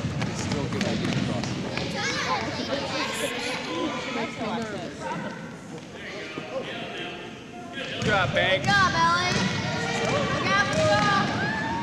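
Girls shout and cheer in a large echoing gym.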